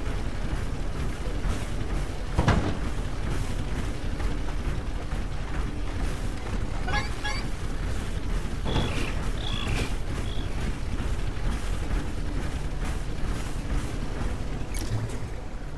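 Heavy metallic footsteps stomp steadily as a large robot walks.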